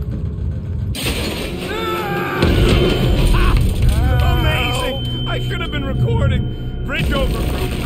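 A metal walkway shatters with a loud crash and falling debris.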